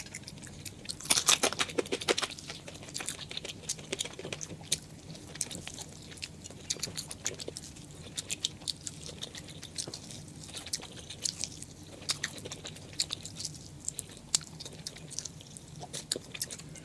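Crispy fried food crackles as fingers tear it apart.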